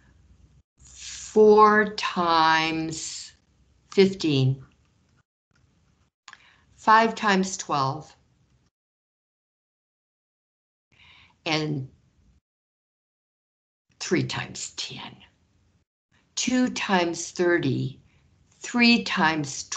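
A woman speaks calmly through a microphone in short phrases with pauses.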